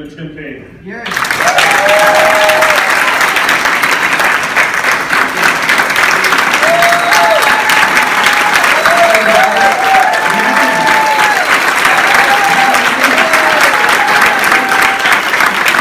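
A crowd whoops and cheers.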